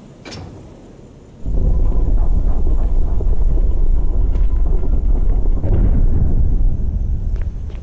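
Footsteps thud slowly on a stone floor.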